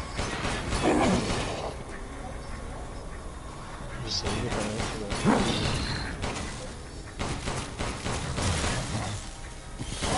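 A pistol fires loud gunshots in a cramped echoing space.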